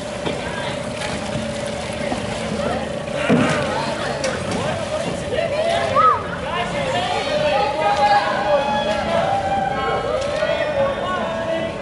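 Oars dip and splash in canal water as a crew rows a boat.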